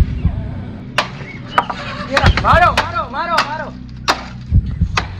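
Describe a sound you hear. A stick knocks sharply against wood.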